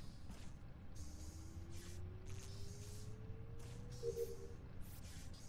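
An electronic tone rises slowly in pitch, then ends with a chime.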